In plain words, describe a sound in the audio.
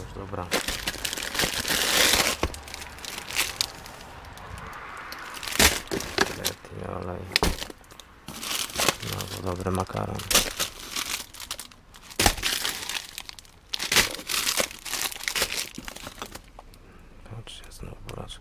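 Plastic wrappers and packets rustle and crinkle as a hand rummages through groceries.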